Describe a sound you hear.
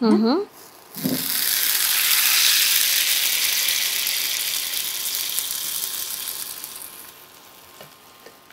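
Hot oil sizzles loudly as it is poured into a pot of food, then slowly dies down.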